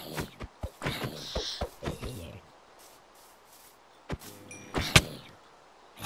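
A sword strikes a game creature with sharp hits.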